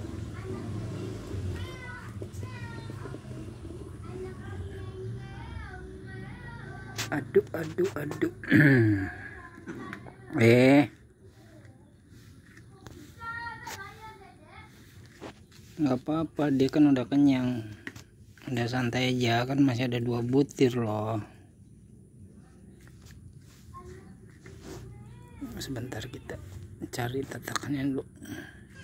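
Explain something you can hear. A cat chews and laps food from a plate.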